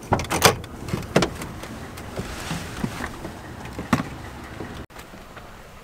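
A man shifts and climbs out of a car seat with rustling.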